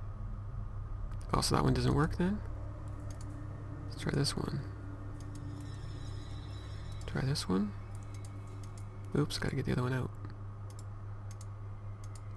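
Metal keys click into a lock one after another.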